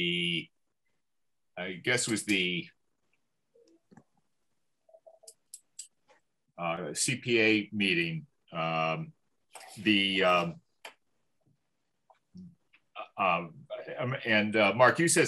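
A man speaks calmly over an online call, heard through a microphone.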